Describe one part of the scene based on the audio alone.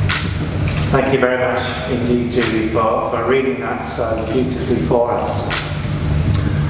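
An elderly man speaks calmly in a large echoing hall.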